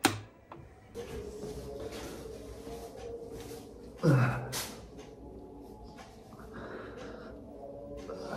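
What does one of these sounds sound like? A man wipes his face with a towel, rubbing softly.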